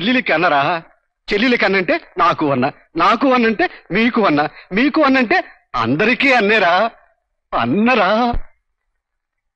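A middle-aged man speaks loudly and with animation, close by.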